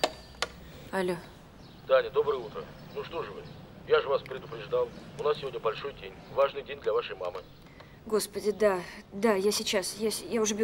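A young woman speaks into a phone close by, first calmly and then with excitement.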